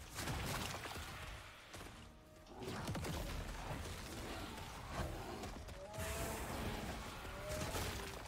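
Magic blasts and hits crackle in a fast video game fight.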